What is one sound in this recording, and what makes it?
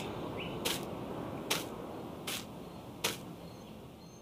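Footsteps thud slowly on wooden boards.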